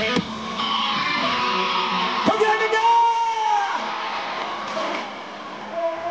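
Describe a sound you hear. A young man sings loudly through a microphone.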